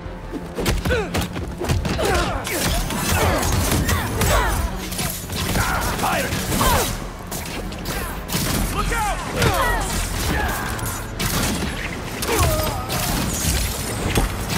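Punches and kicks land with heavy thuds in a fast brawl.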